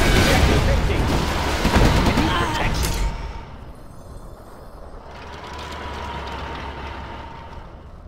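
Gunfire and blasts crackle in a battle.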